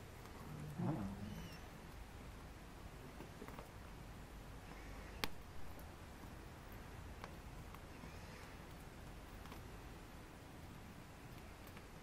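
A fire crackles and pops outdoors.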